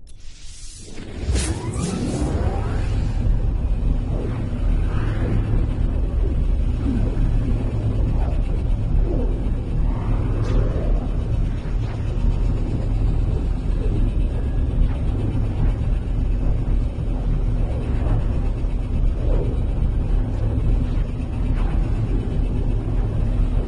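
A spaceship's engine roars loudly in a deep, steady rush as it hurtles through a warp.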